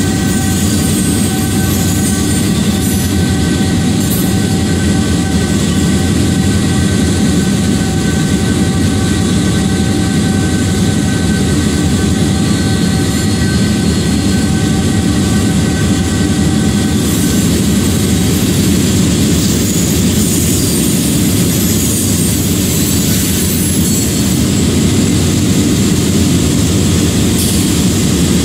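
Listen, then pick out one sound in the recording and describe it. Train wheels roll and clatter over the rails.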